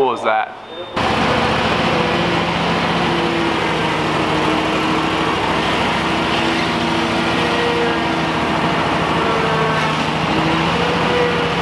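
A small engine roars steadily.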